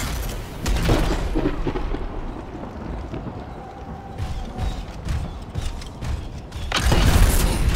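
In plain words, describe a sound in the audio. Heavy metal footsteps thud on the ground.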